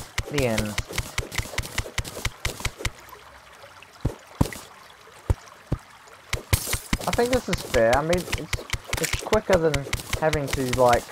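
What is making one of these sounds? A pickaxe chips at rock in quick, repeated knocks.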